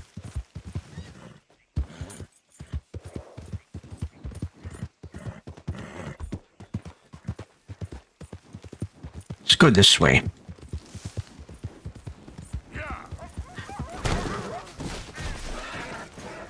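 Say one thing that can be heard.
A man talks with animation through a headset microphone.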